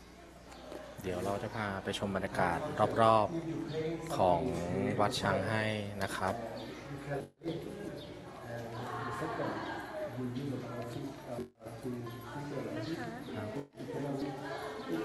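A woman talks nearby in a lively voice.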